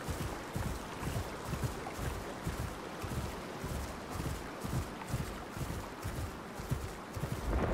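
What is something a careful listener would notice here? Leaves and bushes rustle as a large creature pushes through.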